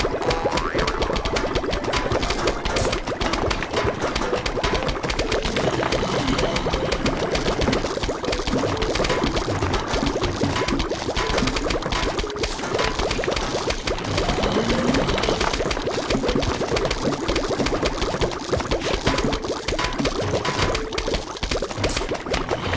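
Rapid puffing and popping game effects sound without a break.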